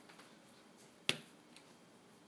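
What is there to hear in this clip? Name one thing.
A marker cap clicks.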